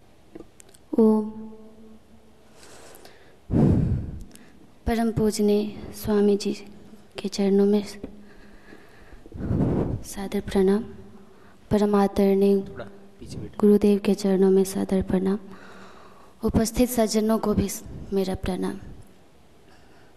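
A young woman speaks slowly and steadily into a microphone.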